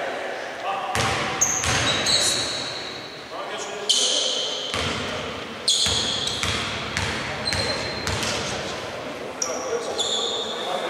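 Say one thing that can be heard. A basketball bounces repeatedly on the court.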